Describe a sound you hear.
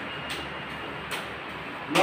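A ceiling fan whirs steadily.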